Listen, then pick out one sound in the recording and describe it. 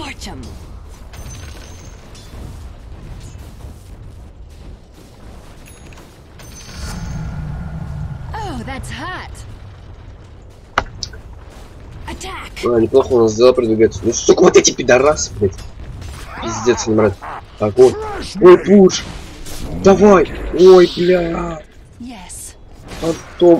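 Magic blasts and weapon clashes crackle in a fantasy battle.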